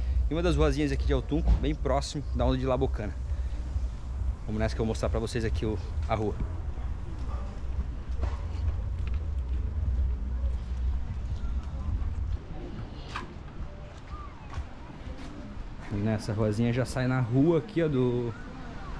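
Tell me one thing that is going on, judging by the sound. A young man talks close to the microphone with animation.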